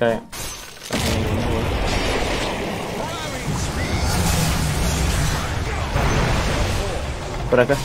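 Game battle effects clash and roar.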